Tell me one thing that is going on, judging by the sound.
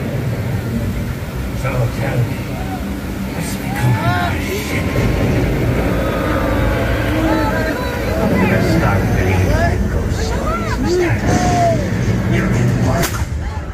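A fountain sprays and splashes water.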